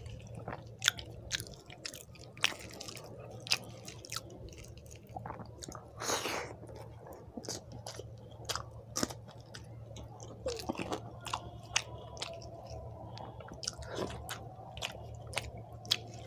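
Fingers squish and mix soft rice on a plate.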